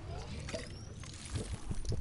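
A video game character gulps a drink.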